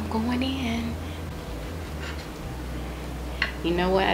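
A knife and fork scrape on a plate.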